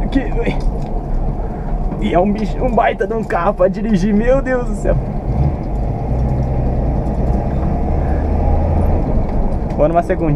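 A car engine rumbles steadily from inside the car as it drives along a road.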